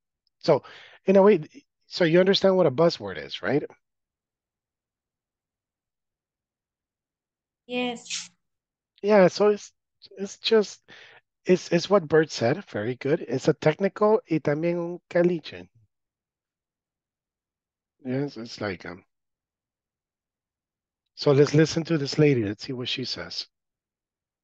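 A young man speaks calmly over an online call, in bursts with pauses.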